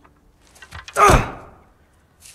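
A fist thumps once against a wooden wall.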